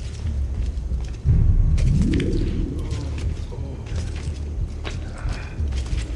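Footsteps thud across tiled rooftops.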